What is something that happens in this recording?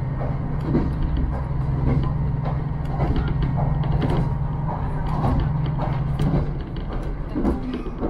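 A train rumbles steadily along the track, heard from inside a carriage.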